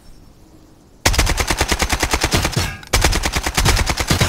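A rifle fires in rapid, loud bursts close by.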